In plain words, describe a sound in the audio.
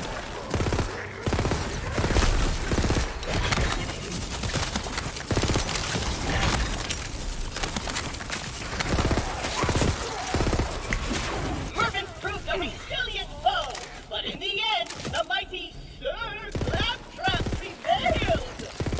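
Guns fire in rapid bursts of loud shots.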